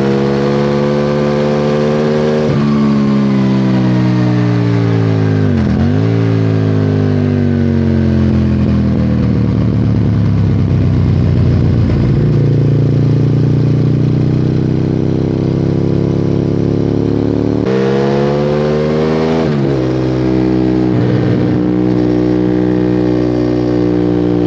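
A motorcycle engine roars loudly, revving up and down through gear changes.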